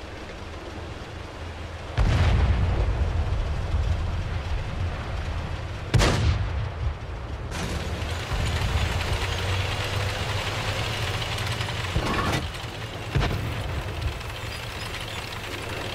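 A tank engine rumbles low and steadily as the tank rolls along.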